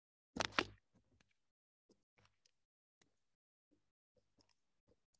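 A woman speaks briefly and quietly into a microphone.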